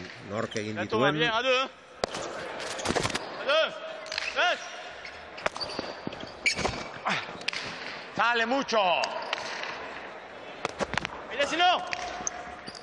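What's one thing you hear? Shoes squeak on a smooth floor as players run.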